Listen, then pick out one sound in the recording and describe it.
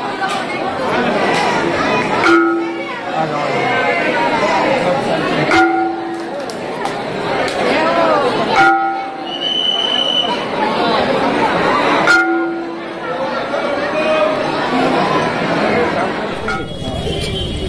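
A large crowd sings and chants together in an echoing hall.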